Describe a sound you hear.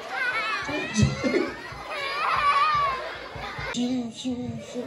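A crowd of women and children laughs and cheers.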